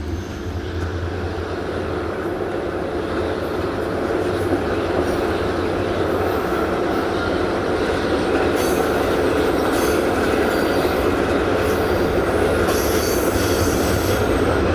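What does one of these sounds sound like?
A train rumbles steadily along the rails, heard up close from a carriage.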